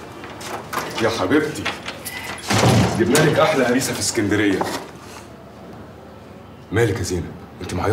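A man speaks loudly and with agitation nearby.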